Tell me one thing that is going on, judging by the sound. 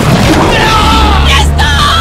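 A man screams in terror.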